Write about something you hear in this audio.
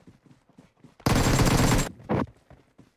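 Rapid gunfire rattles in a short burst.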